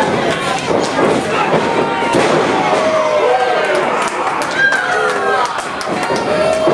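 A crowd of men and women shouts and cheers in an indoor hall.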